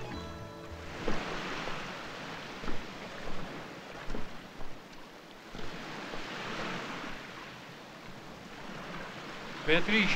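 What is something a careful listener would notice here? Small waves wash gently onto a pebble shore.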